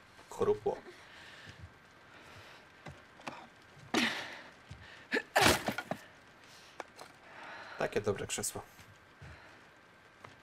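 A young man talks in short bursts close to a microphone.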